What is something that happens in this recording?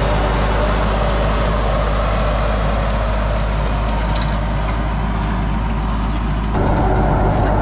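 A rake scrapes through loose soil.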